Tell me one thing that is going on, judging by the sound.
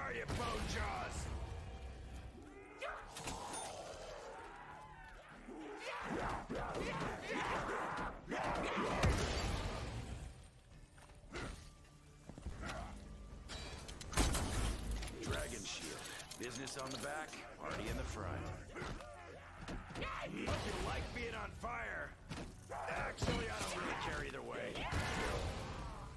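Zombies growl and snarl close by.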